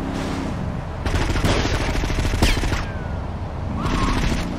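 A gun fires repeated sharp shots.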